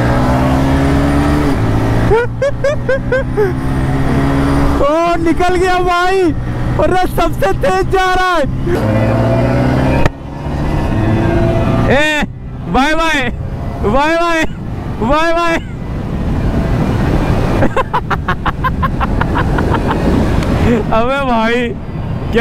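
Motorcycle engines rev loudly and repeatedly up and down close by.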